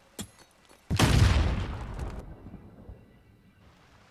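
A loud explosion booms in a video game.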